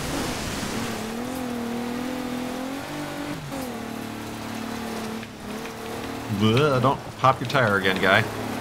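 Rain patters on a car.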